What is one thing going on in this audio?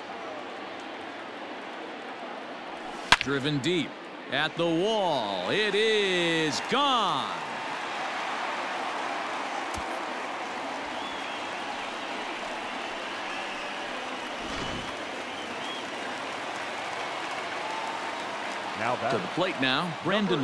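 A large stadium crowd roars and cheers.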